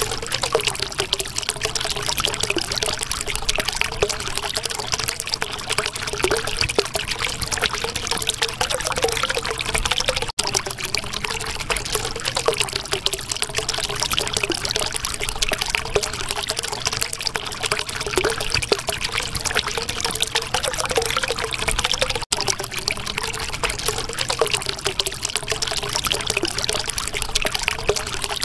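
Water bubbles and gurgles steadily.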